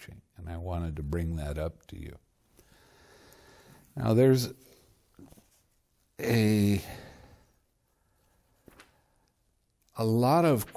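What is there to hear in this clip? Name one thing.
An elderly man speaks slowly and calmly, close to a microphone, with long pauses.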